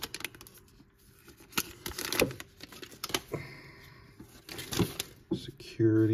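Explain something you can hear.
Plastic wrapping crinkles as it is torn open.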